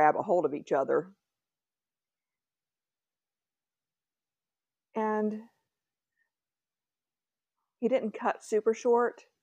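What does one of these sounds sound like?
A middle-aged woman talks calmly and closely, with pauses.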